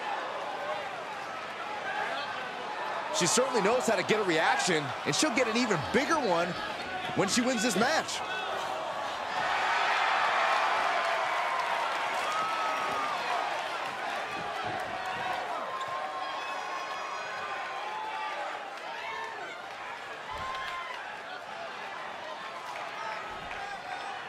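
A large crowd cheers in a big arena.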